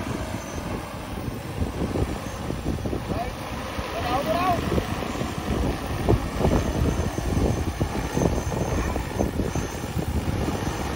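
A large drone hovers overhead with a loud, steady whirring buzz.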